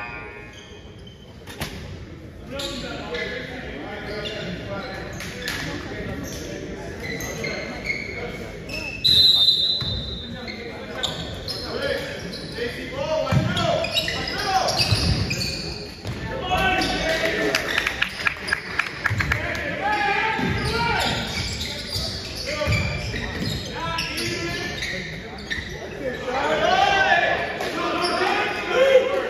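Young men shout and call out on the court.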